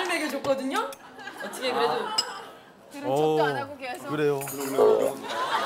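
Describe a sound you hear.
A young woman talks playfully nearby.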